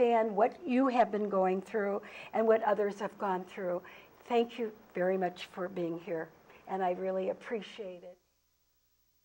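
An older woman talks with animation, close to a microphone.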